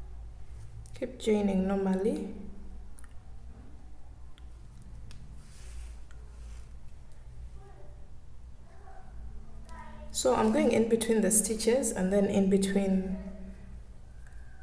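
Yarn rustles softly as a crochet hook works through it.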